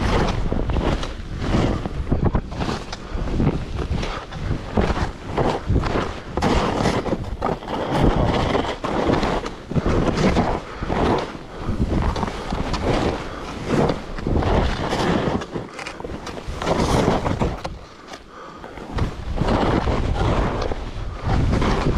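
Skis hiss and swish through deep powder snow.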